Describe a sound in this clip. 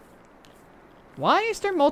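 Footsteps tap on pavement.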